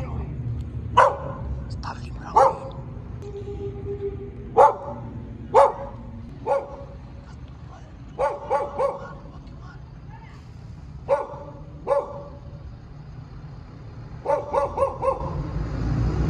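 Firecrackers pop with sharp bangs outdoors, one after another.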